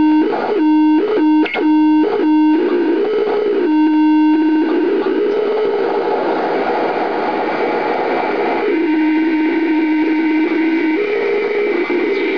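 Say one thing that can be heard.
An electronic synthesizer tone buzzes, stutters and warbles as its knobs are turned.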